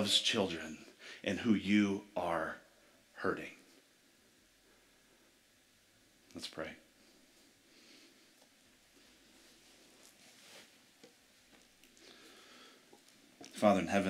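A man speaks calmly through a microphone in a large hall, with long pauses.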